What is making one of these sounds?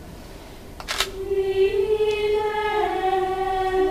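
A mixed choir starts singing together in a reverberant space.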